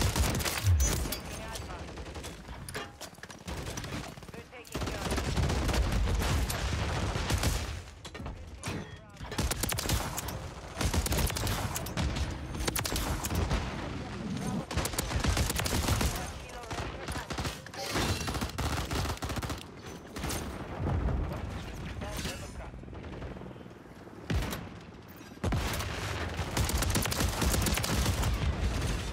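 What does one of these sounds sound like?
Rapid gunfire bursts out in loud cracks.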